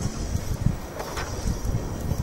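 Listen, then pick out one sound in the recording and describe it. A blast bursts with a sharp crack.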